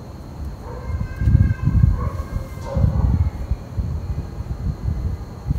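A heavy pot scrapes and rumbles as it turns on a stand.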